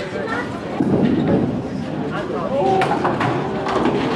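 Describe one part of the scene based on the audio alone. A bowling ball rolls heavily down a wooden lane.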